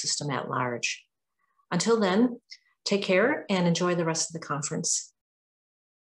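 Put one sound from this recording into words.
A middle-aged woman speaks calmly into a microphone, as if on an online call.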